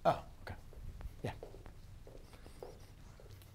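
Footsteps walk across a hard floor nearby.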